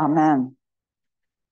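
A woman sings a short note through a microphone.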